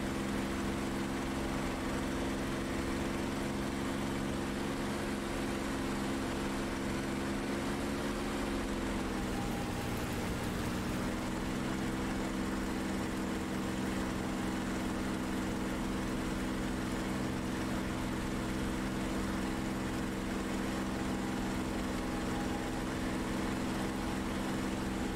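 Wind rushes past the cockpit.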